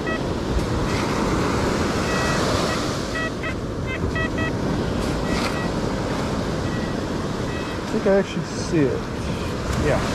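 A metal scoop digs and scrapes through sand.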